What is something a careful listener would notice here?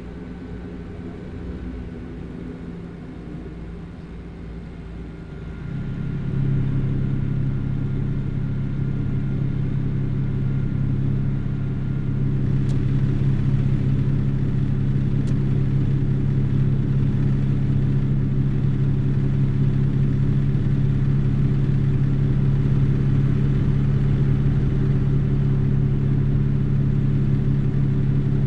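A truck engine drones steadily and grows louder.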